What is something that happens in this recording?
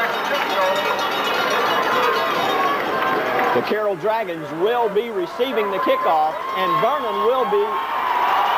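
A crowd murmurs and cheers in an open stadium.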